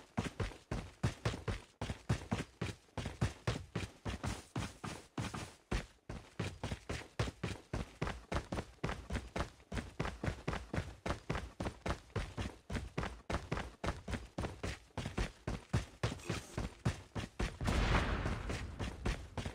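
Footsteps run quickly and steadily over the ground.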